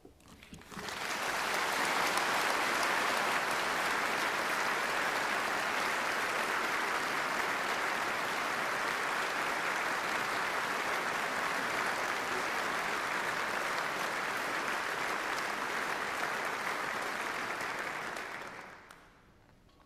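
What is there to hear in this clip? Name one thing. A large audience applauds in a big echoing hall.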